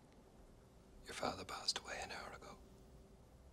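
A middle-aged man speaks calmly and firmly nearby.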